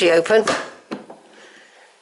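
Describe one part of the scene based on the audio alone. An iron door latch rattles and clanks.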